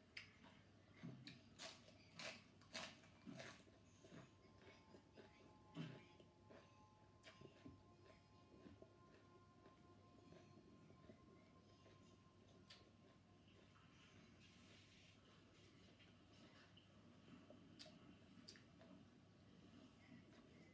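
A middle-aged woman chews and smacks her lips loudly up close.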